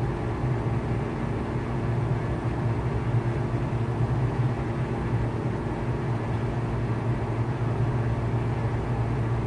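A small propeller plane's engine drones steadily inside the cockpit.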